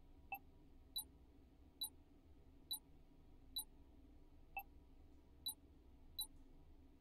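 Short electronic menu blips sound as options are selected.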